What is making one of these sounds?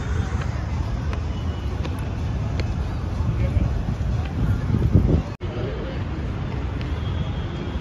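Footsteps tap on a hard stone pavement.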